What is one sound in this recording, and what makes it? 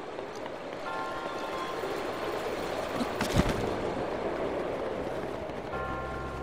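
Wind rushes steadily past a paraglider in flight.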